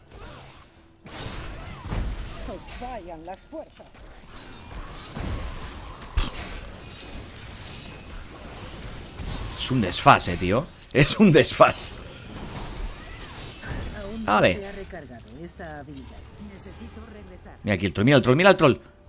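Game combat effects clash and burst.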